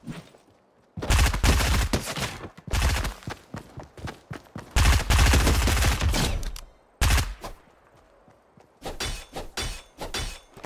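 Gunshots fire in quick, loud bursts.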